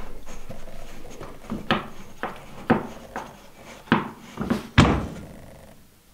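A metal level knocks and taps against a wooden floor.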